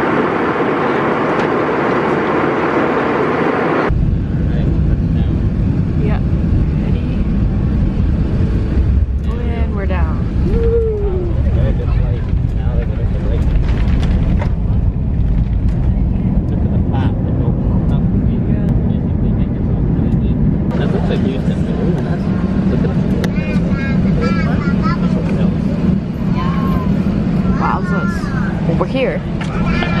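Jet engines roar loudly in an airplane cabin.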